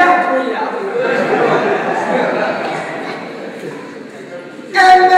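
A young man speaks with animation, heard through a microphone in an echoing hall.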